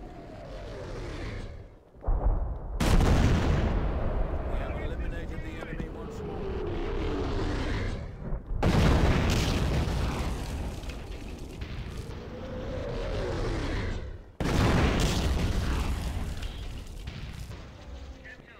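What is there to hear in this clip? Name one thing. Shells whistle in and explode with heavy booms, one after another.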